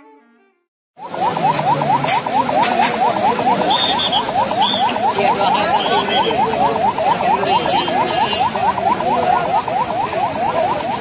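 A crowd of men talks and shouts loudly outdoors.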